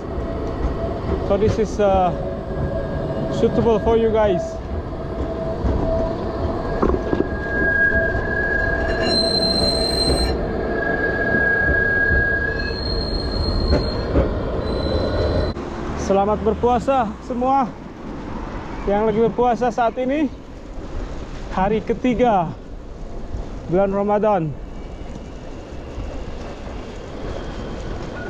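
Bicycle tyres roll over paving.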